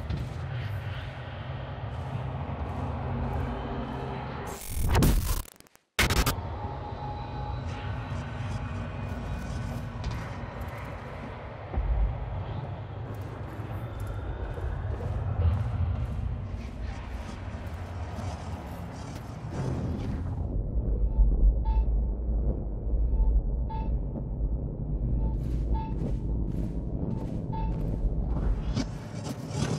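Footsteps clang on metal grating and stairs.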